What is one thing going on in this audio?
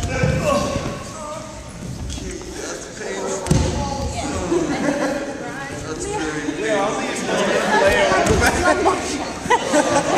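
Several young adults talk and call out in a large echoing hall.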